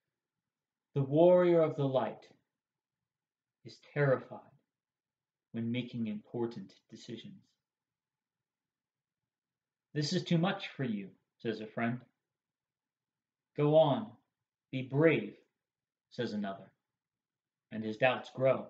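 A young man speaks calmly and close by, in short phrases with pauses.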